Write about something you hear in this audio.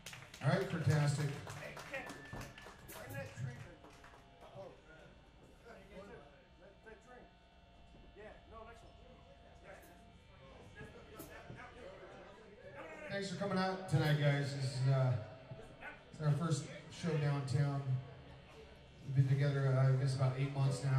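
An electric guitar plays through an amplifier.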